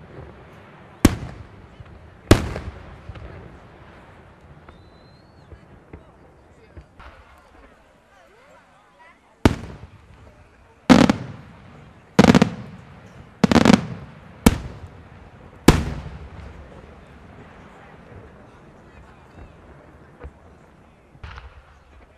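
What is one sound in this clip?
Fireworks burst with loud booms that echo away into the distance.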